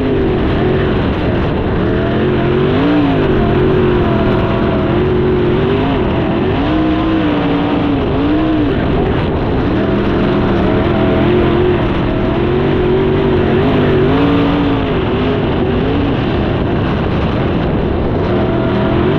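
A race car engine roars loudly up close, rising and falling in pitch.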